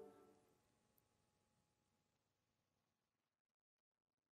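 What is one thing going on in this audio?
A band's final chord rings out in a hall and slowly fades away.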